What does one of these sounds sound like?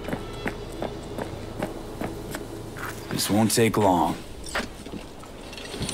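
Footsteps crunch on sand and gravel.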